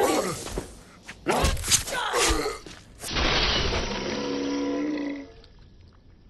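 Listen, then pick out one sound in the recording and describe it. A sword slashes and strikes flesh with wet thuds.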